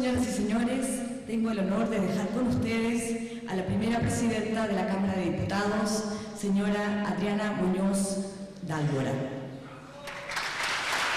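A young woman speaks calmly into a microphone in a large echoing hall.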